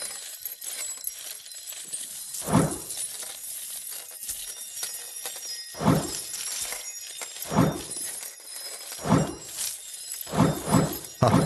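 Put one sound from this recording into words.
Coins clink and jingle as they pour down through pipes.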